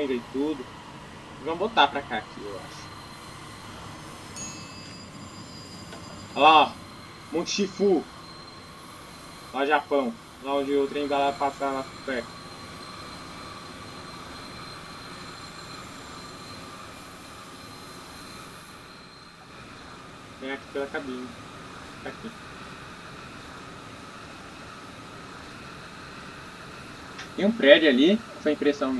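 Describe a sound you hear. An electric train rumbles steadily along the rails at high speed.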